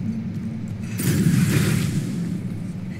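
A game sound effect whooshes loudly.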